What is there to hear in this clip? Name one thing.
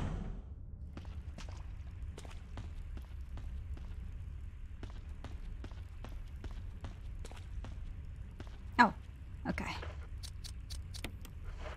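Footsteps crunch on a rough stone floor.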